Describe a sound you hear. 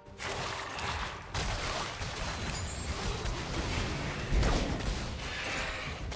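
Video game spell and combat sound effects whoosh and crackle.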